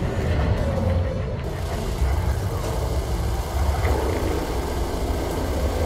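Laser weapons fire in quick bursts.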